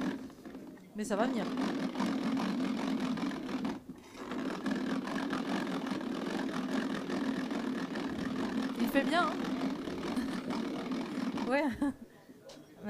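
A hand mill grinds with a steady whir.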